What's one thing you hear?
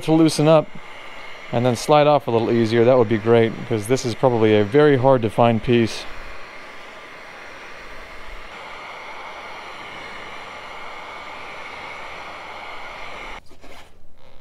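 An air blower hisses steadily.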